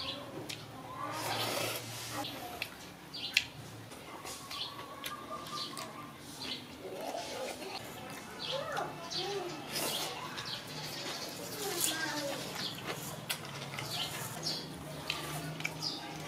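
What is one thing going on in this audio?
A man slurps noodles loudly, close by.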